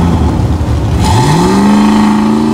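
A drag car's engine revs up sharply and roars at high pitch.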